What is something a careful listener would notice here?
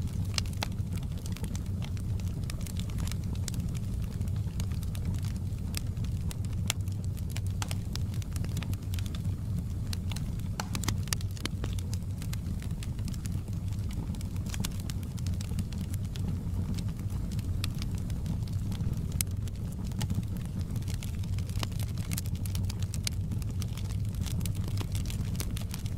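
A wood fire crackles and pops sharply.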